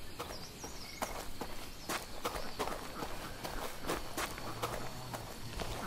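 Footsteps thud quickly on dirt.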